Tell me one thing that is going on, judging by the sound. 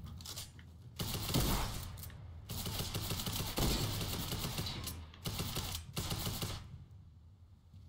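Wooden panels clatter and thud as walls are built quickly.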